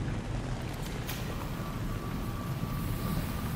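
A repair tool buzzes and crackles against metal.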